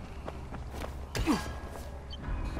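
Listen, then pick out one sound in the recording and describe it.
A metal fence rattles as it is climbed.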